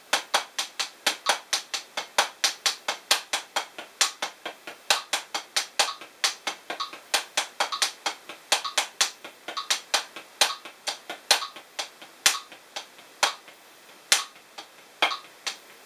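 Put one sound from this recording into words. Drumsticks tap quickly and sharply on a practice pad in a steady rhythm.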